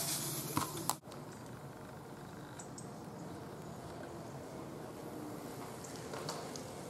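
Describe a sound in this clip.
Bicycle tyres roll through mud as riders pass.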